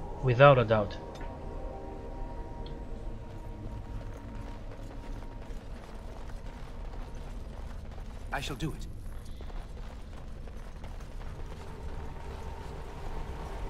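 Footsteps tread over stone.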